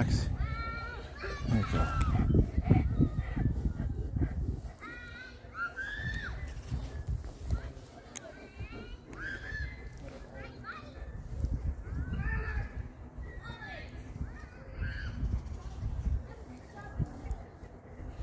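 A dog whines in short high cries.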